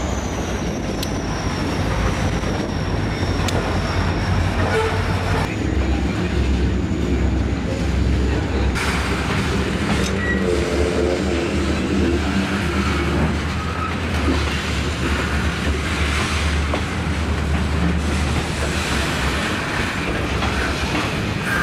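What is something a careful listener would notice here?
A freight train rolls along the tracks with steady rumbling and clatter.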